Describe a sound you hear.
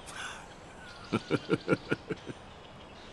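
A middle-aged man laughs.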